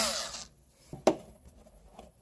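A plastic wall plate clicks as it is pulled loose.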